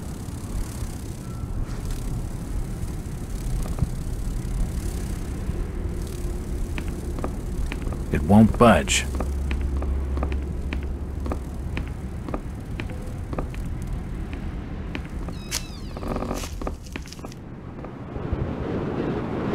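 Footsteps thud on creaking wooden floorboards.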